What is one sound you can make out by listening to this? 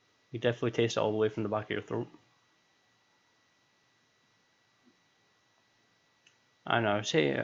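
A young man speaks calmly and close into a microphone, pausing in between.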